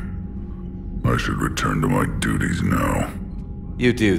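A deep-voiced man speaks calmly and slowly.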